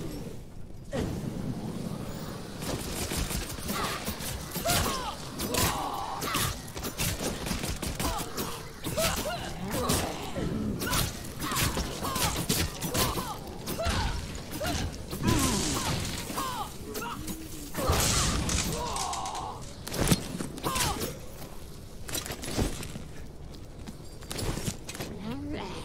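Weapons clash and strike in a fast, noisy fight.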